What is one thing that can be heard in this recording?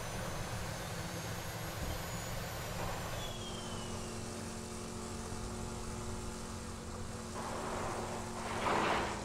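Tyres crunch over loose sand and rough ground.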